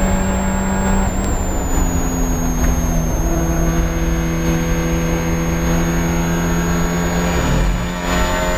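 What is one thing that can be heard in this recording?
A four-cylinder Spec Miata race car's engine note drops as it shifts gear.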